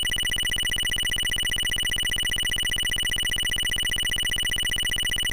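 A rapid electronic beeping tallies points in a video game.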